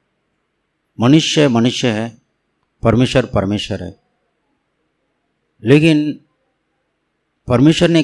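An elderly man speaks with animation into a microphone, in short phrases with pauses.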